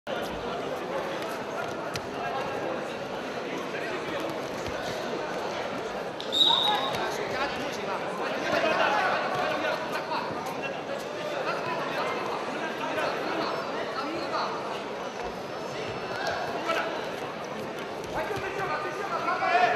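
A large indoor crowd murmurs and cheers, echoing through a big hall.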